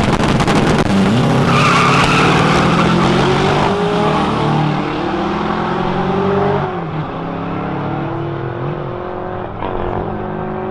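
Two cars accelerate away with engines roaring and rising in pitch, then fade into the distance.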